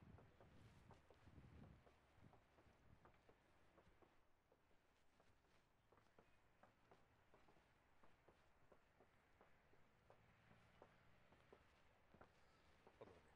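Footsteps walk slowly and evenly across a hard floor.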